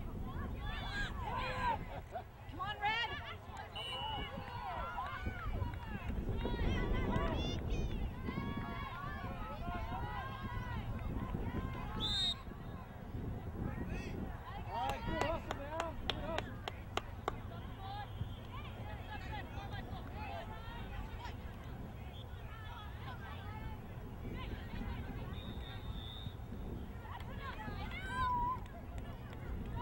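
A crowd of spectators shouts and cheers from the sidelines outdoors.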